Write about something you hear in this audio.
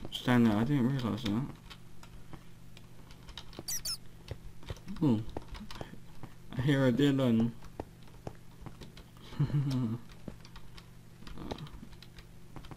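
Footsteps tread on hard stone.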